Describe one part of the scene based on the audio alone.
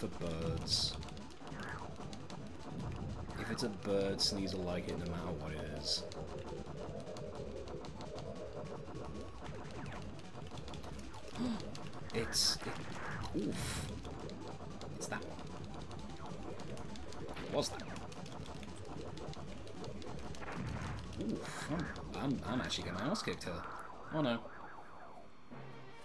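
Laser shots zap rapidly in a space video game.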